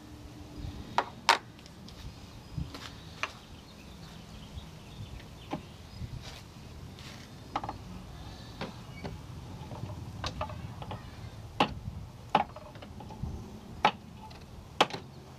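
A mallet knocks sharply now and then.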